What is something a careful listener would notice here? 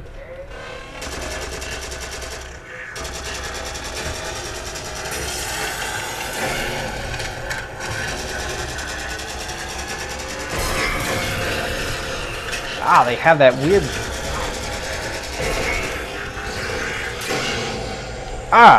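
Energy weapons fire rapidly in bursts.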